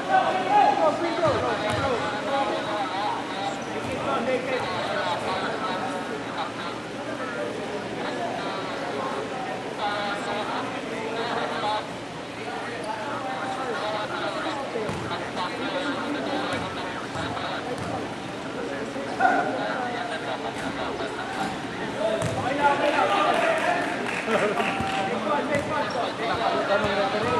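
Young men talk and call out across a large echoing gym.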